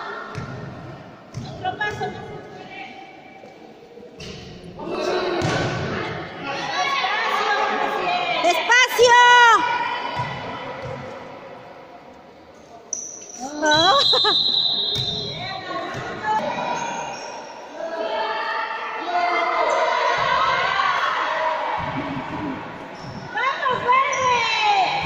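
Young girls shout and cheer in a large echoing hall.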